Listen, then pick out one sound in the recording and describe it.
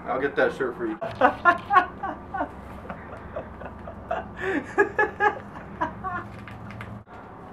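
A young man laughs and talks close by.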